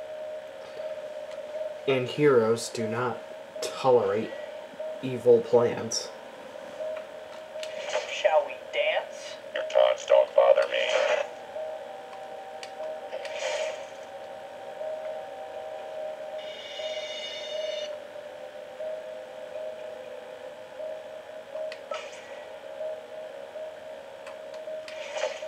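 Video game music plays with a steady hum.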